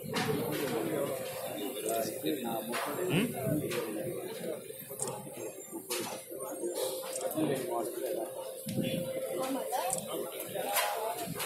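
A crowd of men talks nearby outdoors.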